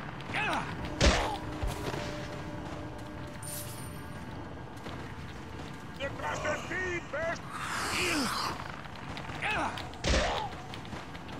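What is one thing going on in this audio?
Heavy thuds land during a scuffle.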